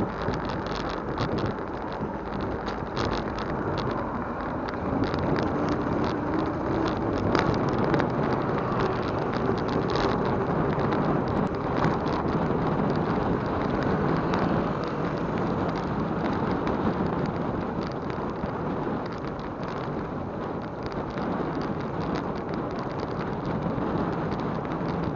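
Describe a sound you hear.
A bicycle's chain and wheels rattle and click over the road.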